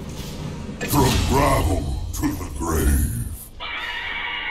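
Magic spell effects whoosh and crackle loudly.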